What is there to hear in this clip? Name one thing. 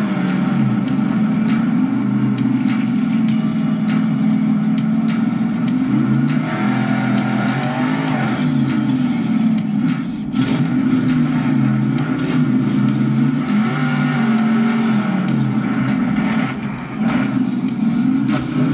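A racing game's engine roars and revs steadily from a loudspeaker.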